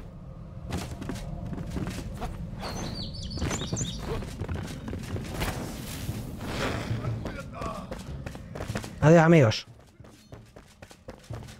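Footsteps thud on wood and stone.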